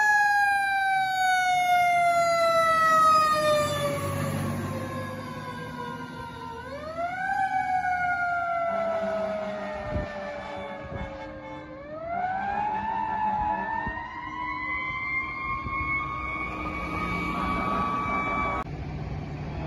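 A fire engine siren wails loudly nearby, falling and rising again as the truck drives away.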